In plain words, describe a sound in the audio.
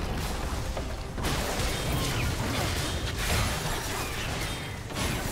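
Game spell effects blast and crackle in a fight.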